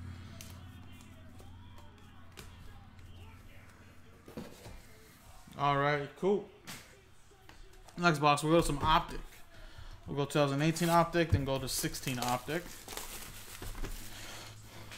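Cardboard packs rustle and click as hands handle them.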